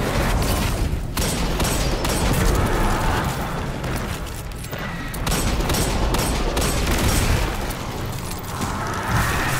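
Guns fire in rapid loud blasts.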